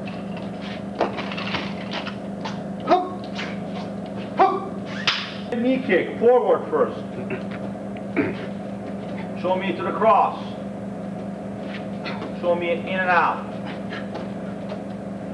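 Bare feet thump and slap on a padded floor.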